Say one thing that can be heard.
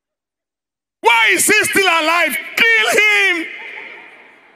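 A man shouts with excitement, echoing in a large hall.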